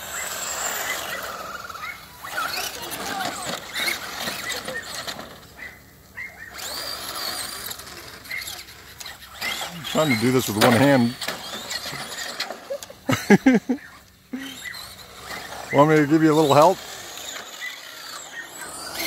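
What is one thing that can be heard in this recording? Tyres of toy cars skid and rattle on pavement.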